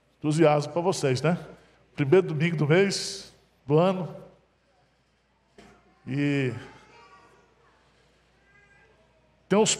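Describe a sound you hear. A middle-aged man speaks calmly and warmly through a headset microphone in a reverberant hall.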